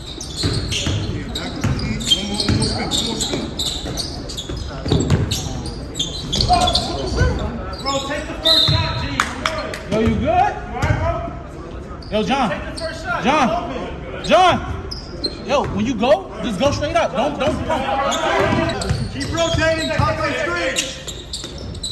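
A basketball bounces on the floor with echoing thuds.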